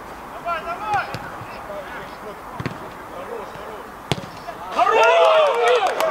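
A football is kicked hard with a thud.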